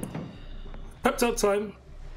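A man speaks with animation close to a headset microphone.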